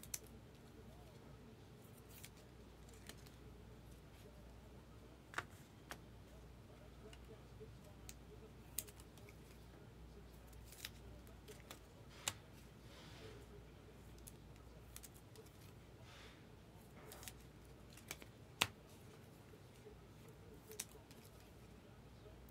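Trading cards click and rustle as hands handle them.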